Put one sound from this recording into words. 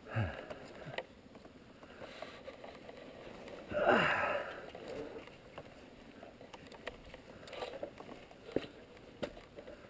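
Tyres crunch over loose stones and dirt.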